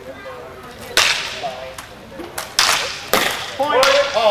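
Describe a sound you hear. Longswords clash together.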